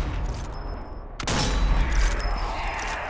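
A sniper rifle fires a loud shot.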